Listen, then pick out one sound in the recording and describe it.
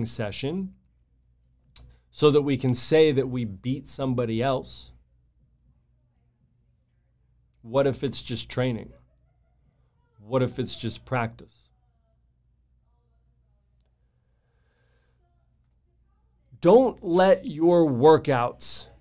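A man speaks calmly into a microphone close by, pausing between phrases.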